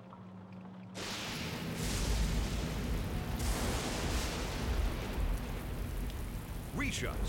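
Thunder rumbles and crackles loudly.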